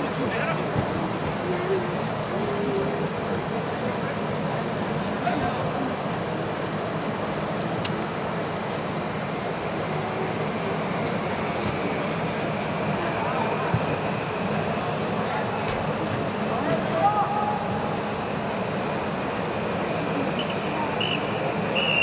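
Teenage boys shout to each other across a large echoing indoor dome.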